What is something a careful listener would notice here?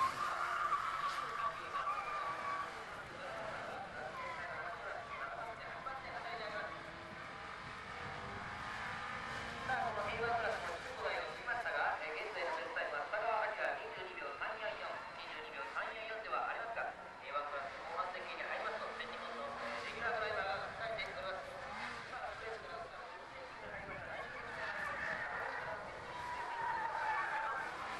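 A small car engine revs and whines as the car races around tight bends.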